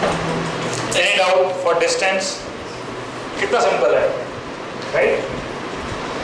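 A middle-aged man lectures calmly into a headset microphone.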